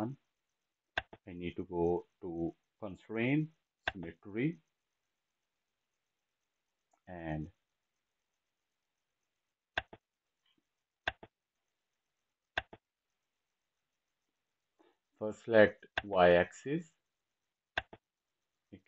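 A computer mouse clicks several times.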